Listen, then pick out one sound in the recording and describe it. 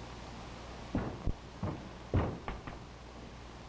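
A man's footsteps thump on a wooden floor.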